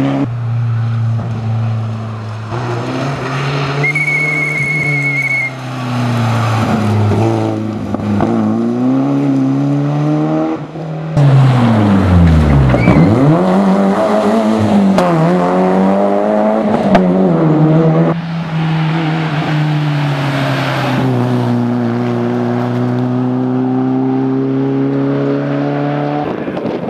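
A rally car engine revs hard and roars past, rising and falling in pitch as the driver shifts gears.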